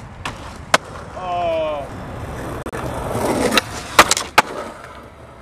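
A skateboard clatters and snaps against concrete.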